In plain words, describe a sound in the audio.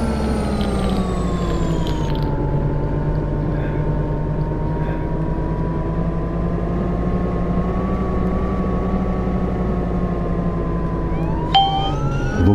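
A diesel city bus engine drones as the bus drives along.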